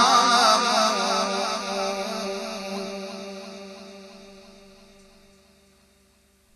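A man chants with a wavering voice through a microphone and loudspeaker, then fades away.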